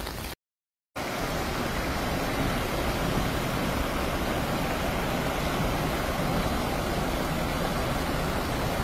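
Floodwater surges and splashes against a truck's wheels.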